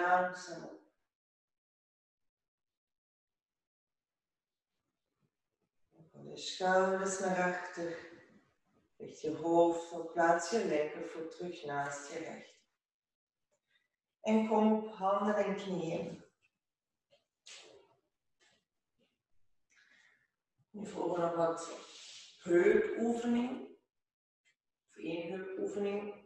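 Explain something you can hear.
A woman speaks calmly and clearly, close to a microphone, in pauses.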